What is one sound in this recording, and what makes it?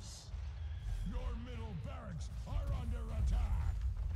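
Magic spells whoosh and crackle in a fantasy battle game.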